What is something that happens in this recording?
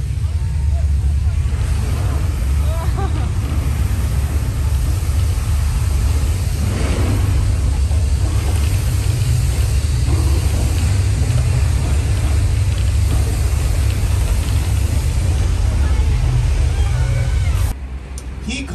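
A ride vehicle rumbles loudly and steadily as it moves.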